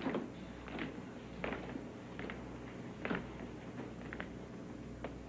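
A man speaks quietly nearby.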